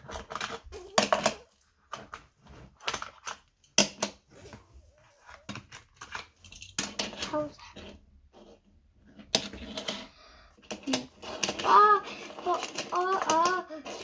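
A plastic storage box rattles as pieces are picked from it.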